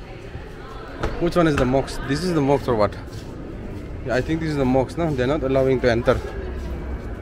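A young man speaks close by, animatedly.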